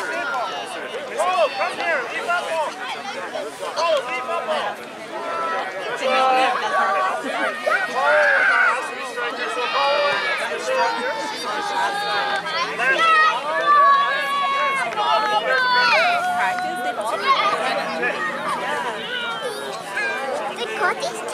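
Young children chatter and shout outdoors.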